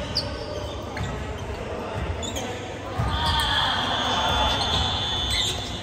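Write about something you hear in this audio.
Young players talk and call out, echoing in a large hall.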